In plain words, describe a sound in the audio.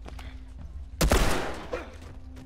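A pistol fires a shot that echoes in a room.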